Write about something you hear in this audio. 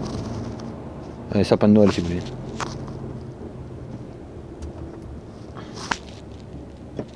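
A vehicle engine hums low and steady from inside the cab.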